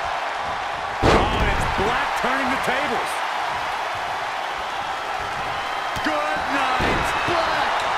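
Bodies slam down onto a wrestling mat with heavy thuds.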